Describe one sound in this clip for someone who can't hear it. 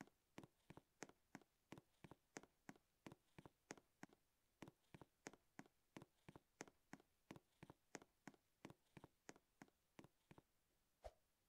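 Quick, even footsteps tap on a hard floor.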